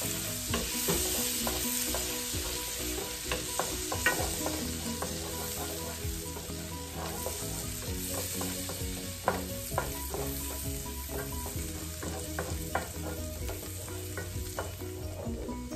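Butter sizzles and crackles in a hot pan.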